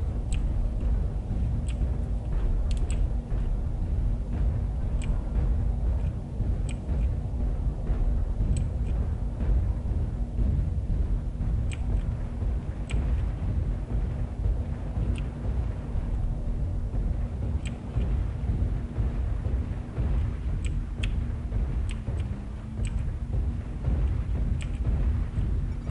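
A heavy walking machine rumbles low and steady.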